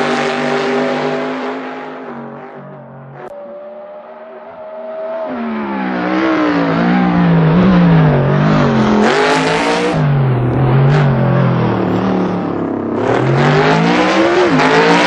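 A racing car engine roars and revs up and down as the car speeds past.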